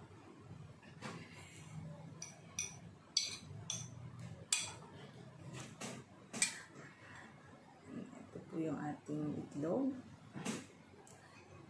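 Metal utensils clink and scrape against ceramic plates.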